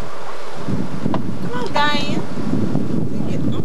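A woman talks casually nearby.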